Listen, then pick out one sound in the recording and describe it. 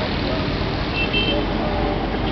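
A vehicle horn beeps briefly.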